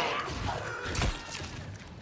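A fist strikes a body with a wet thud.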